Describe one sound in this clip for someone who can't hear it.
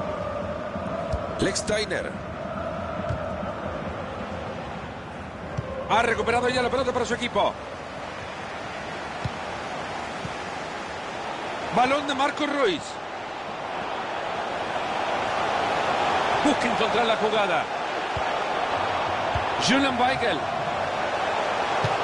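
A stadium crowd murmurs steadily and swells louder toward the end.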